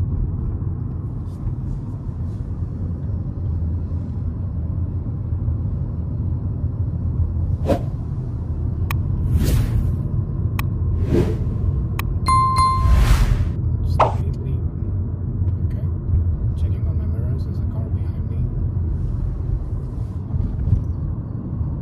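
A car engine hums steadily with road rumble inside a moving car.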